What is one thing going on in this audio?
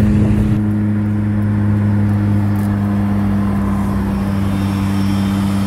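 A car engine hums steadily nearby while driving.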